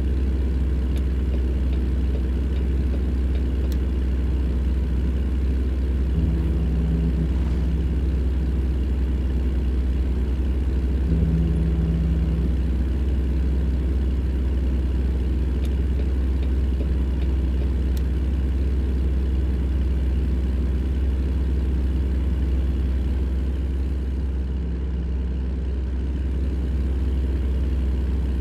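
A truck's diesel engine drones steadily from inside the cab.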